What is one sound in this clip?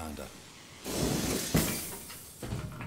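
A power tool grinds metal, throwing sparks.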